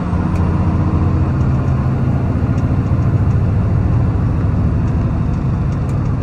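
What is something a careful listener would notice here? Tyres roar on the road.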